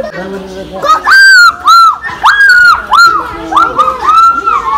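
A young girl squeals and calls out in a high voice close by.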